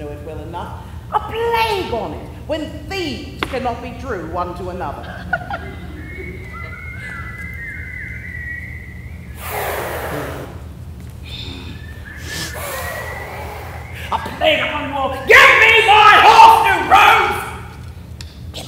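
A woman speaks dramatically on stage, her voice carrying through a large hall.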